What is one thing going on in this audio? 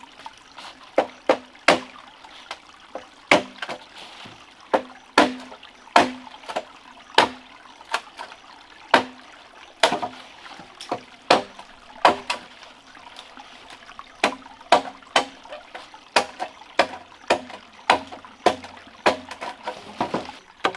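A knife chops at a bamboo stalk with sharp, repeated knocks.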